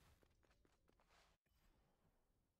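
A blade swishes through the air in a fight.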